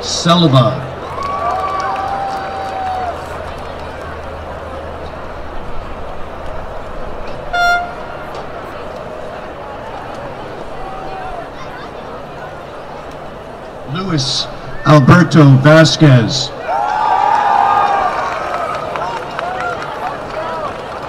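A crowd cheers and shouts in the distance.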